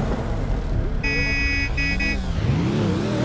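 Countdown beeps sound in steady tones.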